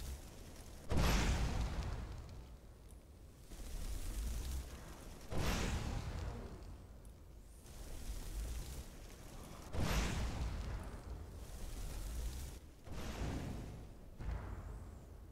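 Blasts of flame explode with loud booms.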